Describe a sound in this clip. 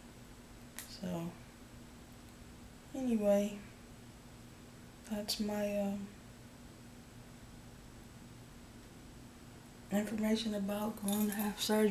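A woman speaks close by in short, calm phrases, with pauses between them.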